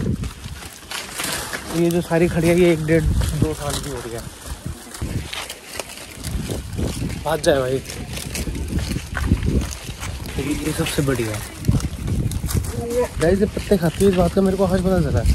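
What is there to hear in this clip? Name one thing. Goats bleat nearby.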